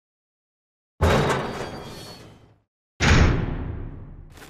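A heavy door creaks open and shuts with a thud.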